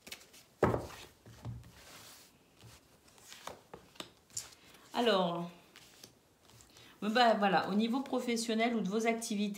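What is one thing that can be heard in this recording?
Cards are laid down on a cloth-covered table with soft taps.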